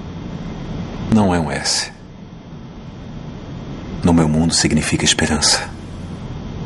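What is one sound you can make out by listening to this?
A man speaks softly.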